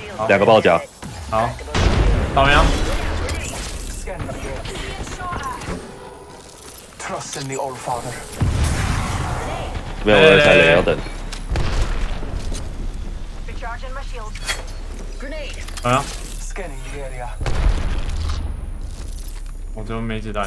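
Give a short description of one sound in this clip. Gunfire rattles in quick bursts from a video game.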